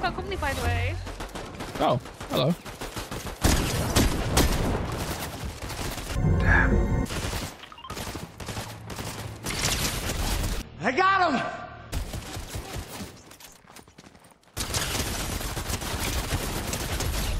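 Gunshots crack rapidly in a game.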